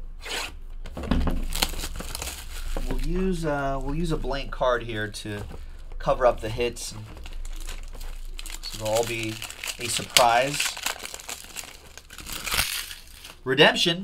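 Plastic wrapping crinkles and tears as a box is opened.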